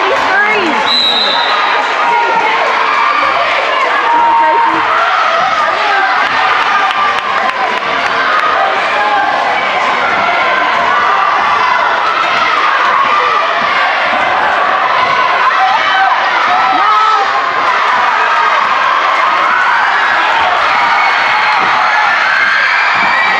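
A crowd of spectators chatters loudly in a large echoing gym.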